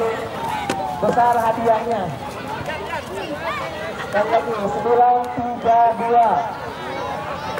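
Young men sing a chant together loudly.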